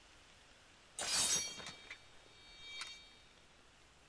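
A sword rings as it is drawn.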